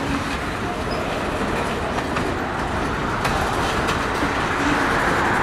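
A freight train rumbles steadily past on the tracks.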